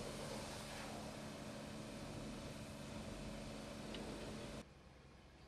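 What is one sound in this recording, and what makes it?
A heavy truck engine rumbles steadily close by.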